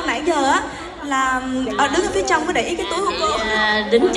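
An older woman speaks warmly close by.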